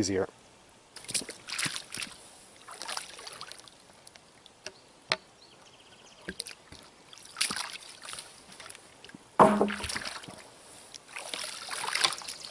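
Boots slosh and splash through shallow water.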